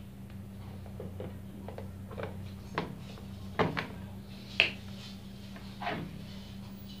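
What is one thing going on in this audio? Plastic switches click sharply as they are pressed.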